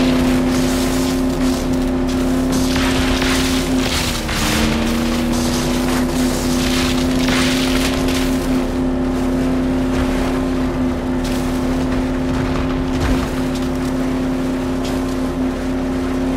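An engine drones steadily, dipping briefly in pitch.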